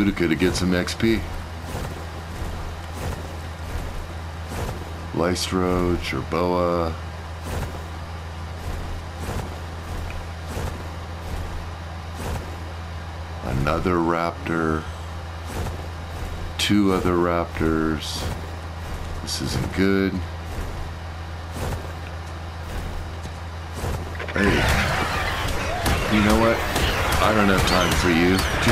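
A large bird beats its wings in flight.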